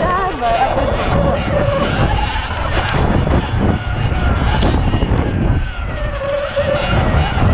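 Wind buffets loudly against the microphone.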